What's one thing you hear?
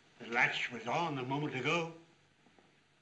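An elderly man speaks gruffly nearby.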